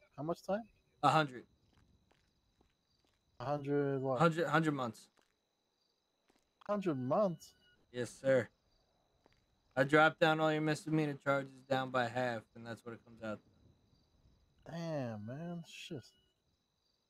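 A man speaks casually into a close microphone, in short bursts.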